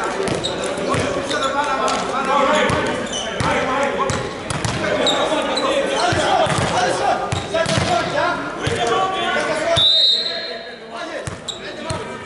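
Volleyballs thud as they are hit and bounce on the floor.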